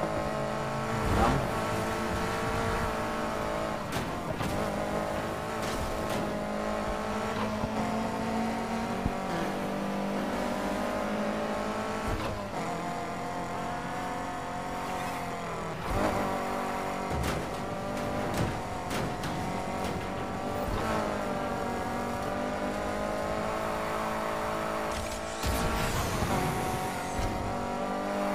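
A car engine roars, revving up and dropping with each gear change.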